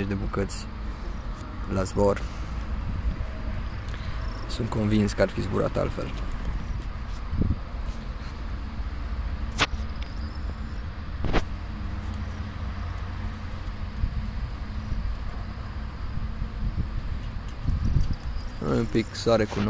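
Wind blows steadily across an open field outdoors.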